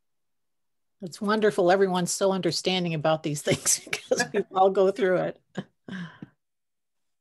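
An older woman speaks animatedly over an online call.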